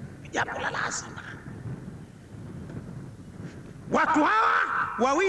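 A man sings loudly through a microphone and loudspeakers outdoors.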